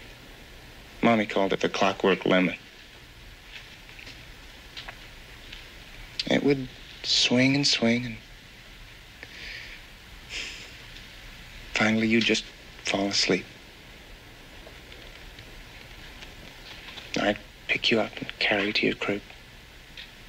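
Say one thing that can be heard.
A young man speaks calmly nearby, in short phrases with pauses.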